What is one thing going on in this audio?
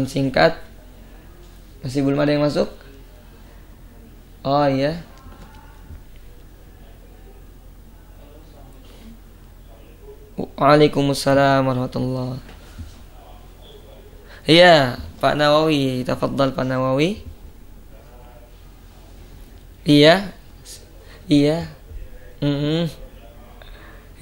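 A young man chants melodically into a close microphone, in short phrases with pauses between them.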